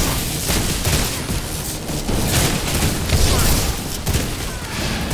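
Magic blasts crackle and boom in quick bursts.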